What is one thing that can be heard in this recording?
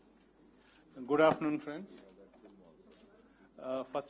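A man speaks into a microphone nearby.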